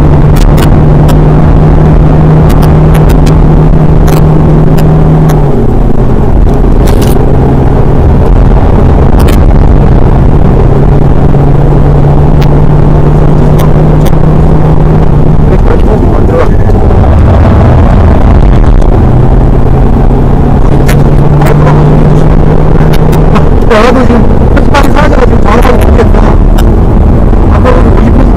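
A car engine roars loudly and shifts pitch.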